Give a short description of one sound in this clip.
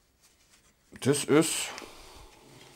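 A man speaks briefly and close by.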